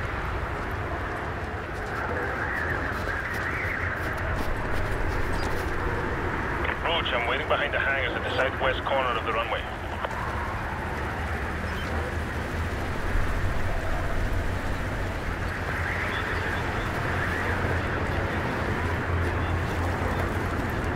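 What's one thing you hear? A strong wind howls steadily through a snowstorm.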